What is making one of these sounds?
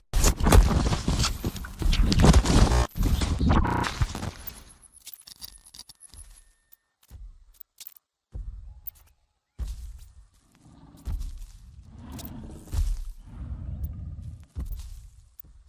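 Leaves and twigs rustle and scrape very close by.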